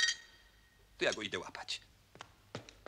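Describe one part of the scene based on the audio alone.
A man speaks loudly and with animation.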